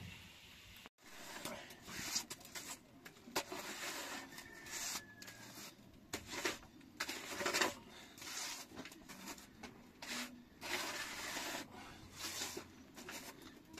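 A steel trowel scrapes as it spreads cement plaster on a block wall.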